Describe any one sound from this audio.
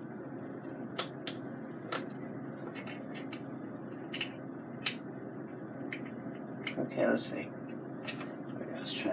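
Plastic parts click and tap as they are handled.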